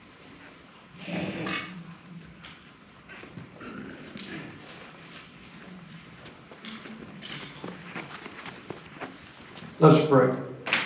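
An elderly man speaks calmly in an echoing hall.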